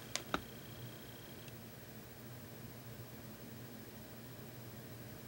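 A fine brush strokes softly across a painted board.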